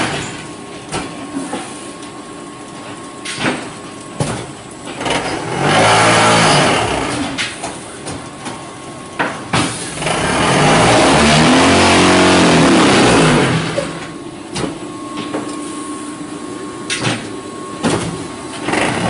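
Metal parts bang sharply inside a machine.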